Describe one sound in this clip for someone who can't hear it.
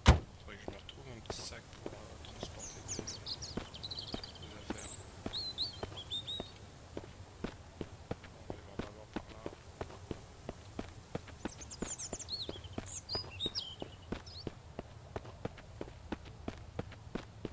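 Footsteps tap steadily on asphalt.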